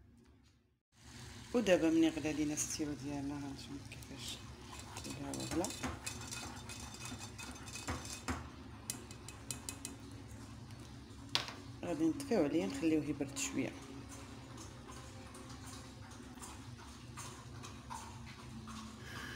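Liquid bubbles and sizzles in a pan.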